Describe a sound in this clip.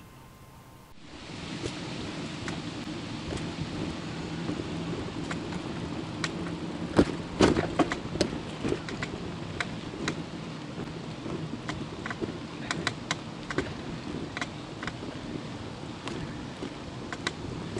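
Bicycle tyres roll over a paved path with a low rumble.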